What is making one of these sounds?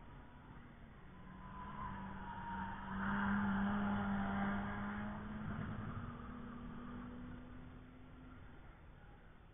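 A race car engine drones past in the distance, rising and then fading away.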